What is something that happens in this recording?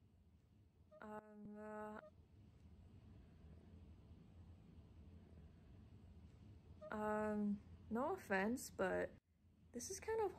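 A young woman speaks close by, in a troubled voice.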